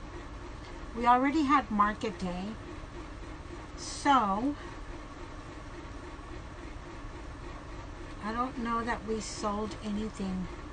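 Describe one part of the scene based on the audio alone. A middle-aged woman speaks calmly close by.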